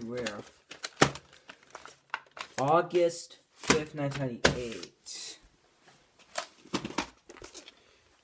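Sharp knocks and rustles come from a box being handled close by.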